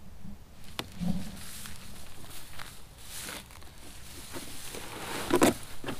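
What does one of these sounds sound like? Footsteps swish through dry grass.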